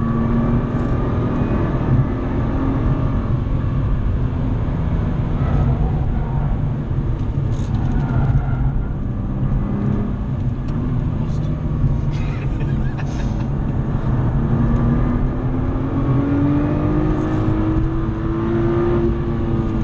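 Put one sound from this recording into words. A car engine drones and revs inside the cabin, rising and falling in pitch.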